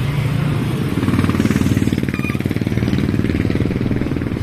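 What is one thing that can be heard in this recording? A motorcycle engine revs loudly as it passes close by.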